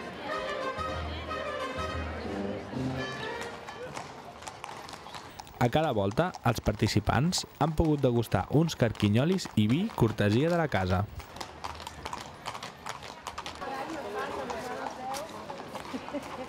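Horse hooves clop on a paved street.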